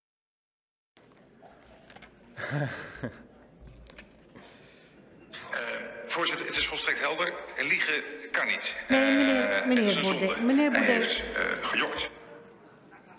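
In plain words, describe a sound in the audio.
A man speaks into a microphone with emphasis.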